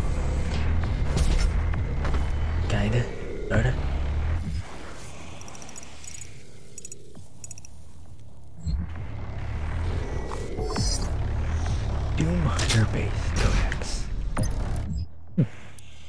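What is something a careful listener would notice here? A deep mechanical rumble drones, then drops away and returns.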